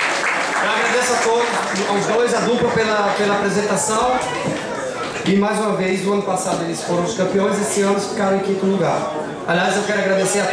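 A man reads out loud into a microphone.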